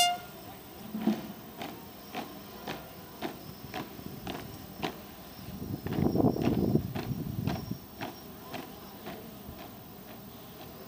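Boots stomp on pavement in a steady marching rhythm outdoors.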